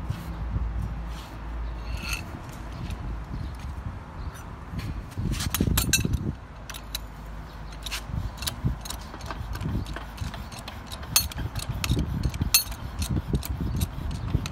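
Metal tools clink and clank against a steel pipe.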